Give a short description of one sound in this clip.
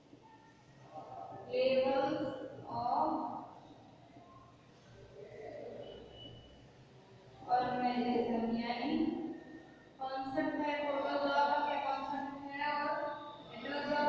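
A young woman speaks calmly.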